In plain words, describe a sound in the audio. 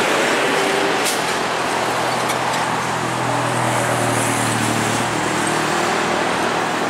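A truck engine rumbles as it drives past.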